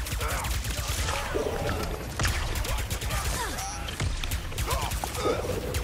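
Energy blasts crackle and zap.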